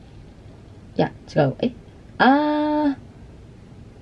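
A young person speaks aloud close by, reading out with exaggerated, drawn-out vowels.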